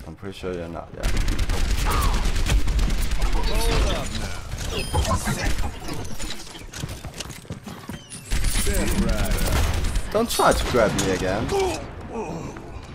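Gunfire from a video game rattles rapidly.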